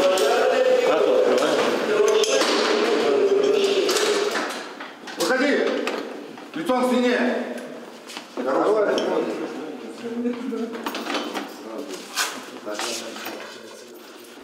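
Men speak loudly and sharply close by.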